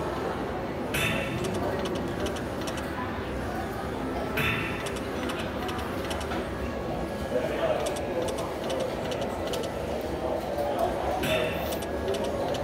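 A slot machine gives a short burst of chimes as each spin starts.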